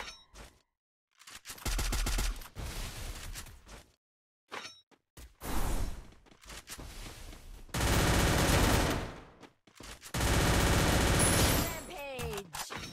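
Footsteps run quickly over grass and then onto a hard floor.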